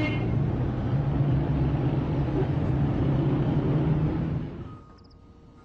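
A vehicle engine rumbles loudly nearby.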